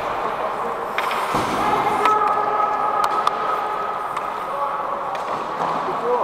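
Hockey sticks tap and clack on the ice now and then.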